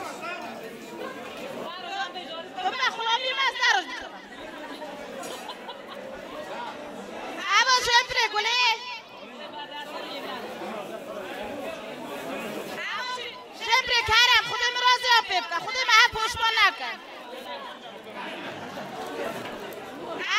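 A crowd of women chatters in the background.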